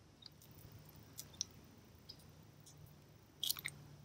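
An eggshell cracks.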